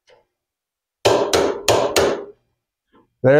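A tool handle knocks and clicks into a holder.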